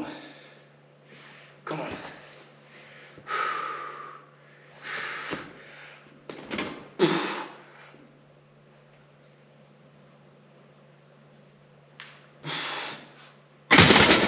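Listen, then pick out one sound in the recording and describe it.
A man breathes out hard with each effortful push.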